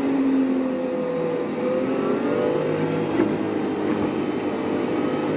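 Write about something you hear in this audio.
A bus engine hums steadily while driving along a busy road.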